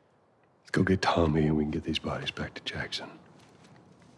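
A man speaks in a low, weary voice close by.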